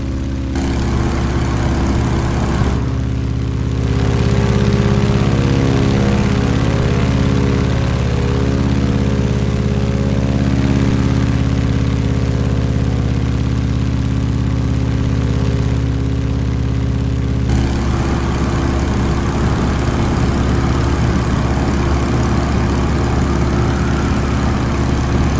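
A propeller engine drones steadily and loudly, with its pitch shifting as the plane banks and turns.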